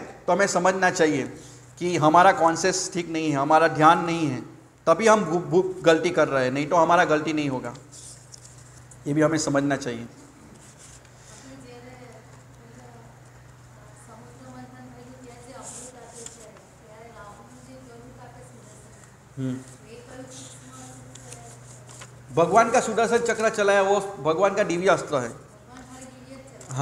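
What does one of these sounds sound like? A middle-aged man reads aloud steadily into a microphone, with pauses.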